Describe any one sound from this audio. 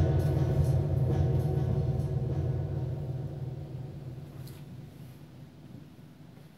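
A keyboard chord rings out and slowly fades.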